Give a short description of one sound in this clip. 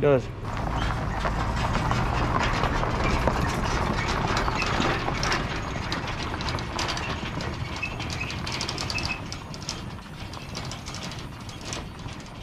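A trailer rattles as it is towed away.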